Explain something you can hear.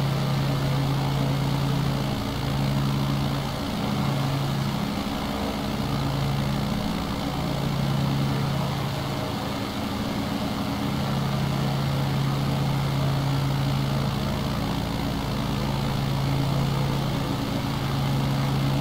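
A small propeller plane's engine drones steadily, its pitch wavering slightly.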